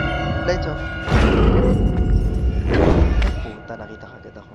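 A large creature groans and snuffles nearby.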